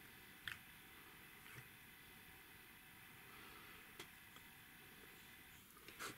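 Plastic parts click and rattle softly as hands fit them together.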